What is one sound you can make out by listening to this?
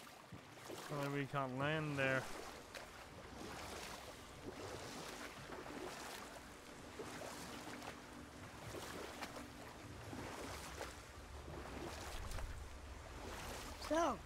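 Oars splash and paddle through water.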